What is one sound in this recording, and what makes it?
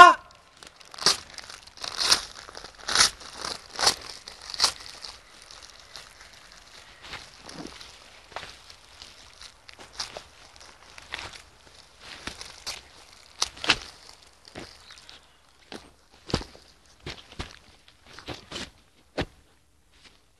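Paper rustles and crinkles.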